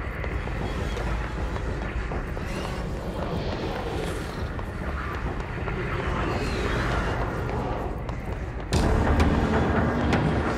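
Footsteps run on a hard floor.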